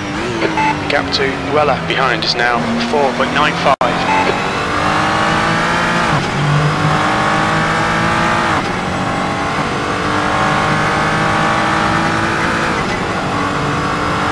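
A racing car engine revs high, its pitch climbing and dropping sharply with each gear change.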